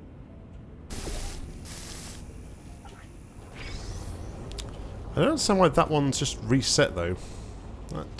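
A laser beam hums and crackles with electricity.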